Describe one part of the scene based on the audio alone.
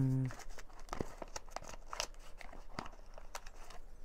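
A plastic box rattles softly.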